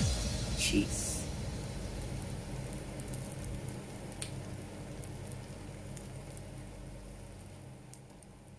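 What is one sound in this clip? Eggs sizzle softly in a hot frying pan.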